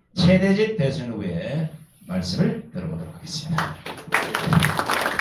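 A middle-aged man speaks into a microphone in a loud, animated voice.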